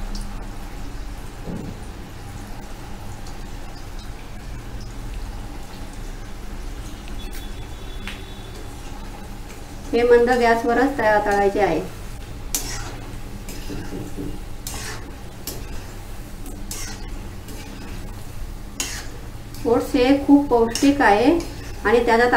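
Oil sizzles and bubbles steadily in a pan.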